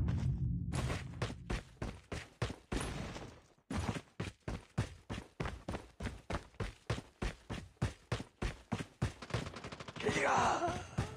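Footsteps tap steadily at a brisk pace.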